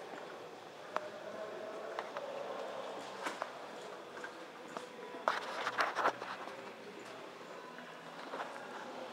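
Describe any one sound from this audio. Footsteps scuff and tap on a hard floor.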